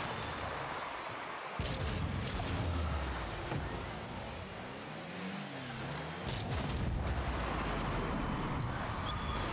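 A game car's engine roars and boosts.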